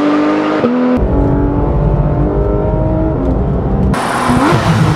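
A sports car engine hums steadily, heard from inside the car.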